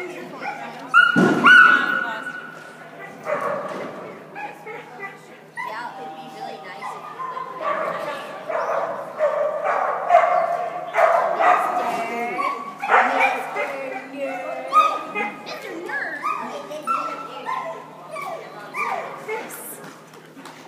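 A woman calls out excitedly to a dog in a large echoing hall.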